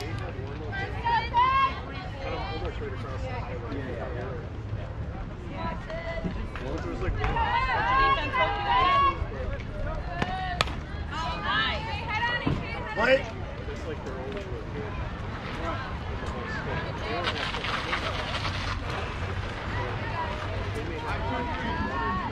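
Young girls shout and cheer loudly nearby.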